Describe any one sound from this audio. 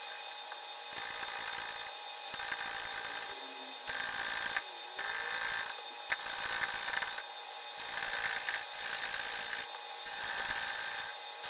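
A cutting tool scrapes and chatters against spinning metal in short bursts.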